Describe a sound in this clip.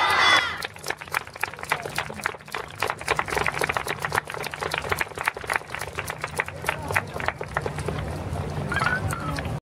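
Wooden hand clappers clack sharply and rapidly.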